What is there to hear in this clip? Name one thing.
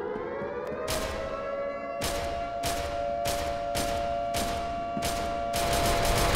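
A rifle fires a quick series of loud shots.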